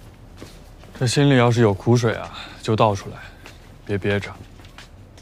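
A young man speaks quietly and earnestly nearby.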